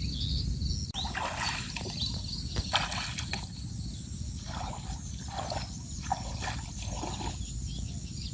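Feet slosh and splash through shallow water.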